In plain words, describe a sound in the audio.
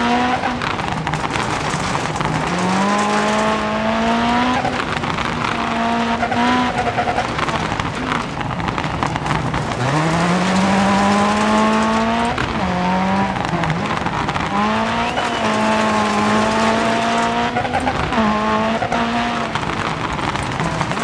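A rally car engine revs hard, rising and falling as gears change.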